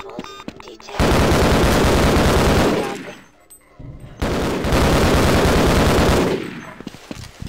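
A rifle fires in long, loud rapid bursts.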